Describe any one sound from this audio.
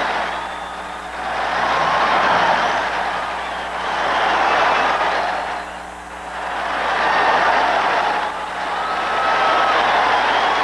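A large stadium crowd roars in waves of cheering.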